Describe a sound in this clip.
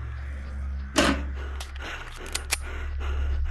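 A pistol is loaded with sharp metallic clicks.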